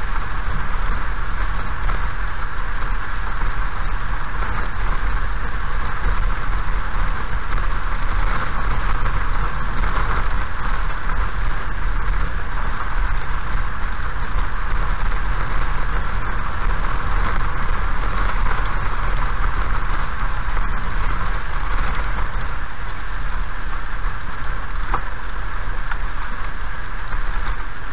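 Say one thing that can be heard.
Rain patters on a car's windscreen.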